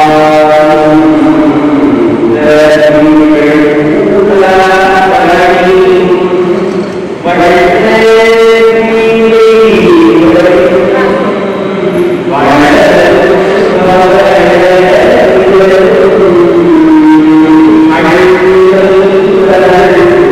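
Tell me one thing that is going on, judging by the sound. A man chants steadily into a microphone in a drawn-out, sung tone.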